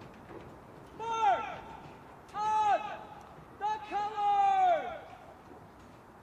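A man shouts drawn-out commands across an open parade ground.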